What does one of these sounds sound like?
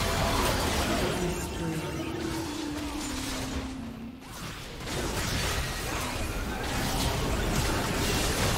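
Spell effects whoosh and blast during a fast video game battle.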